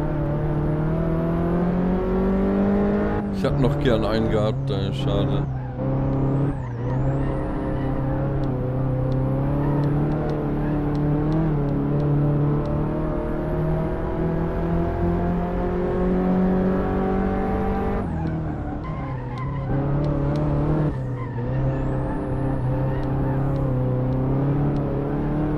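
A small car engine drones and revs, dropping in pitch with each gear change.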